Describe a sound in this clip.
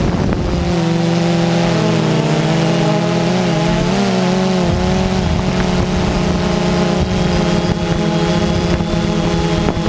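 Drone propellers hum and whine steadily close by, shifting slightly in pitch.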